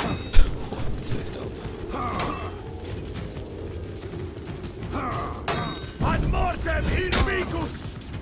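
Metal weapons clang together in sharp, ringing blows.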